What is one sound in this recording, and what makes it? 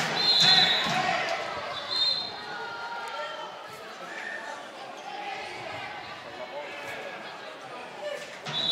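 Young players shout and call out across the hall.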